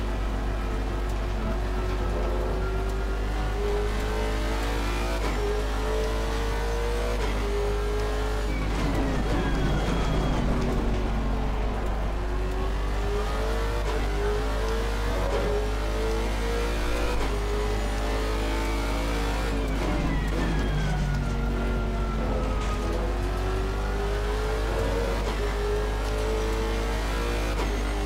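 A racing car engine roars close by, revving up through the gears and dropping in pitch with each shift.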